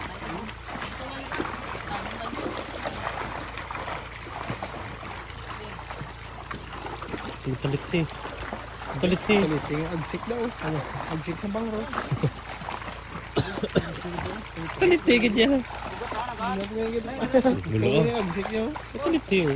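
Water splashes as people wade.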